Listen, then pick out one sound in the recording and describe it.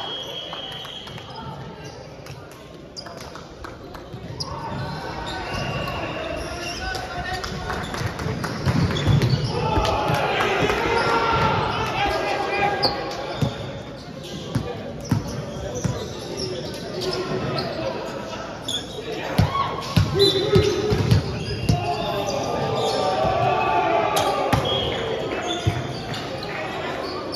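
Young men call out and chatter across a large echoing hall.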